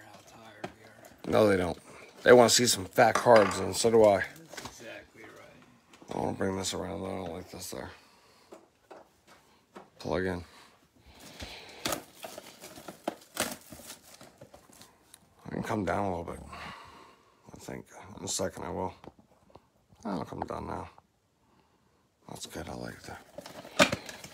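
Plastic wrap crinkles as a box is handled.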